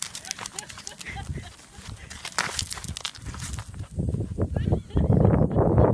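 Loose gravel crunches and scrapes under a hand.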